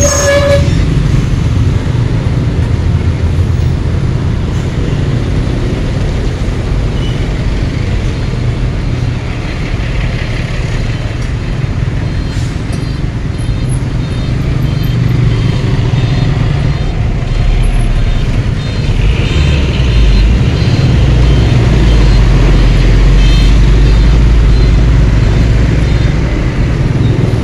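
Engines of surrounding motorcycles and trucks rumble nearby.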